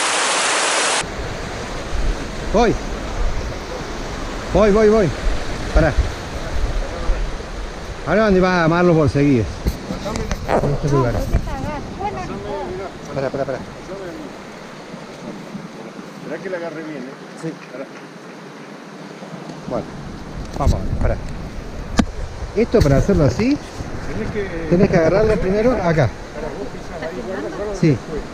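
Water rushes and trickles over rocks.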